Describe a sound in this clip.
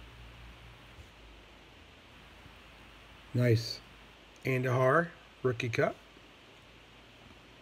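Trading cards slide and rustle softly between fingers.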